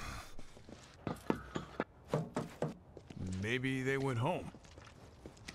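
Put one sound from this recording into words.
Heavy boots tread on a hard floor.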